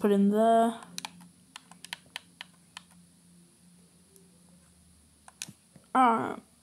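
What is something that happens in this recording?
Short game menu clicks sound as selections are made.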